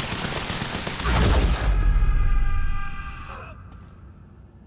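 An explosion booms and debris crashes down.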